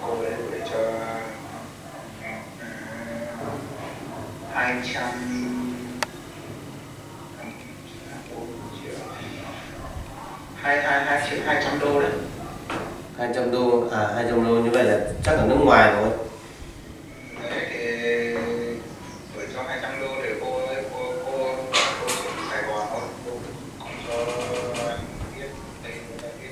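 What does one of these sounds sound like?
A man talks calmly and gently nearby.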